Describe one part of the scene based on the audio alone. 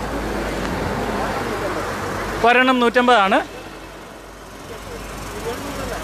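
Traffic hums on a road nearby.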